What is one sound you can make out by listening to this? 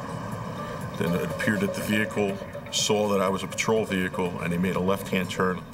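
A man speaks close into a handheld recorder.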